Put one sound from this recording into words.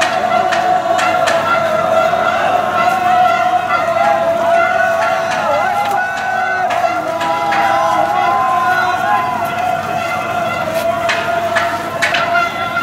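A large crowd of men and women shouts and chatters outdoors.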